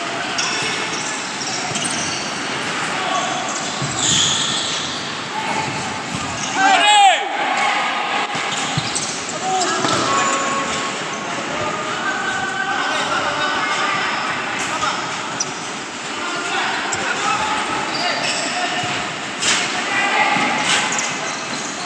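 A ball thuds as players kick it.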